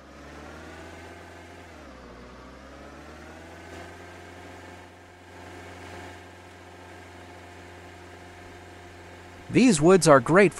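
A truck engine hums, its pitch dipping and then rising.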